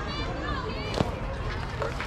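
A bat hits a ball with a sharp crack.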